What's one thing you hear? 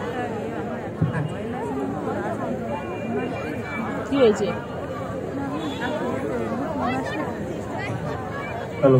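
A crowd of men and women chatters loudly nearby in a large echoing hall.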